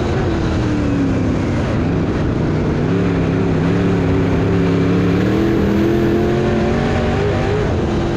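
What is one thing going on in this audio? A race car engine roars loudly from close by, its pitch rising and falling.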